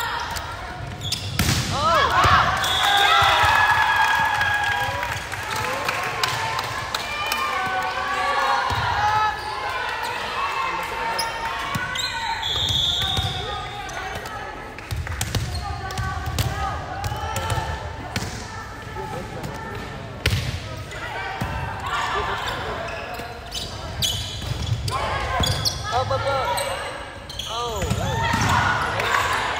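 A volleyball thuds off a player's arms.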